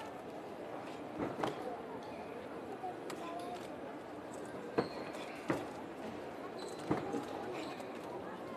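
A large outdoor crowd murmurs in the background.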